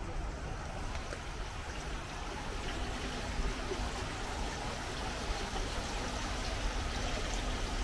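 Water trickles steadily from a small fountain.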